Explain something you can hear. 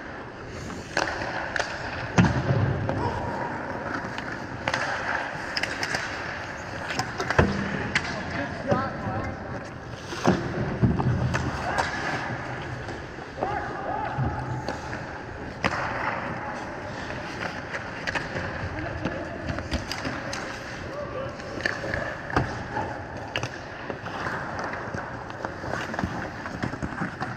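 Hockey pucks and sticks clack sharply on the ice.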